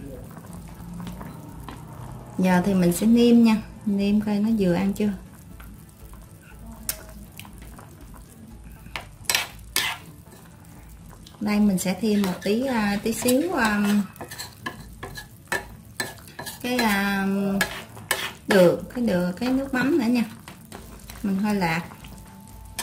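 A metal ladle clinks and scrapes against a pan.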